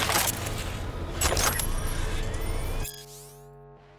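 Loud electronic game sound effects crash and clatter.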